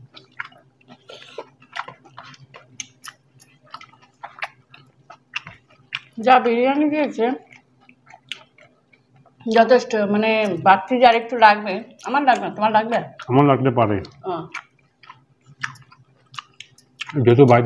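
Hands squish and mix soft food on plates.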